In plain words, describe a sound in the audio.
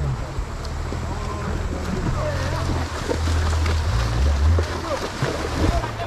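Horses splash through shallow water.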